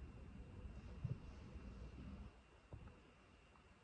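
Fingers tap softly on a table.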